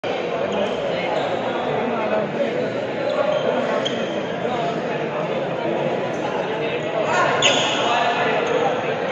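Badminton rackets strike a shuttlecock with sharp, light pops.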